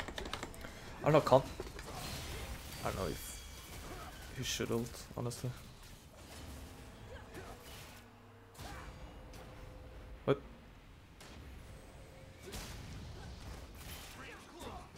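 Magic spells whoosh and burst in quick flurries.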